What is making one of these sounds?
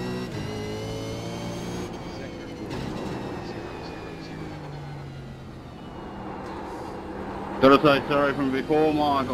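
A racing car engine roars and shifts up and down through the gears.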